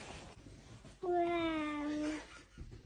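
A toddler holds a long, sung cry close by.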